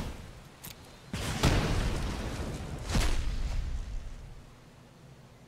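A fiery blast whooshes and roars.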